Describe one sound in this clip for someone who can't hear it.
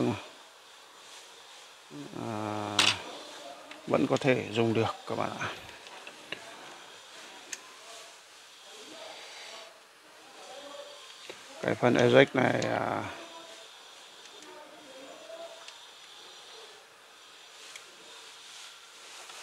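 Small metal parts click and scrape as a cassette mechanism is worked on with a screwdriver.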